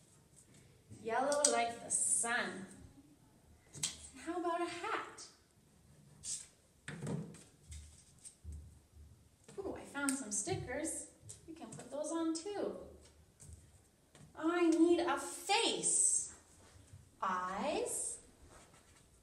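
A young woman talks calmly and clearly, close by.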